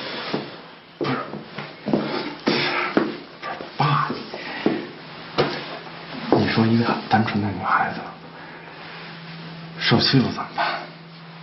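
A middle-aged man speaks nearby in a low, serious voice.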